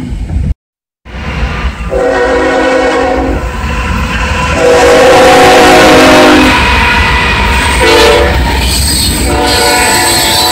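A train rumbles past on the tracks.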